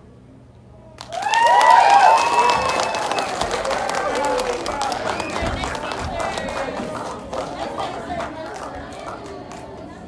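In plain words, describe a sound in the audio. An audience claps loudly in a large echoing hall.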